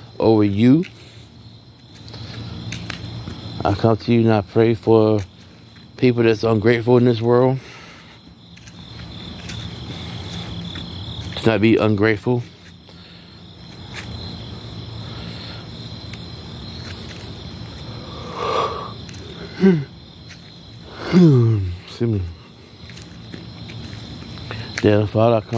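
A young man talks loudly in short bursts close by.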